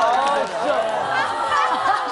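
A woman laughs heartily.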